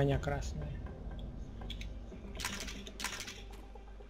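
A shotgun is reloaded with metallic clicks.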